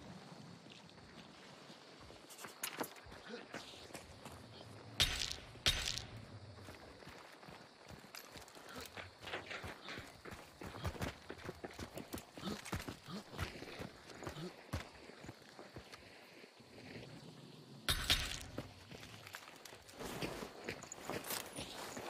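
Footsteps crunch over rocky ground.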